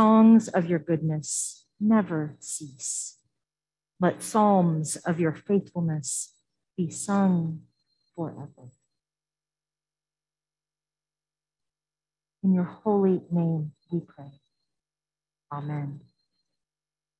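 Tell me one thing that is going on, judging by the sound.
A woman speaks calmly into a microphone in a reverberant room.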